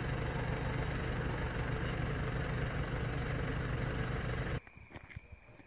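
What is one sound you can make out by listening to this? A vehicle engine idles with a steady low rumble.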